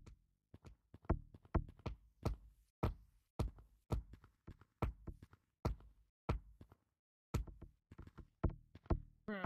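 Footsteps thud on wooden planks in quick steady steps.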